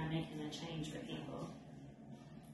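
A young woman speaks calmly into a nearby microphone.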